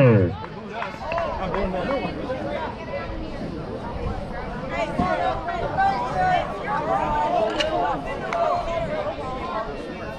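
Young men and boys shout and chatter outdoors across a ball field.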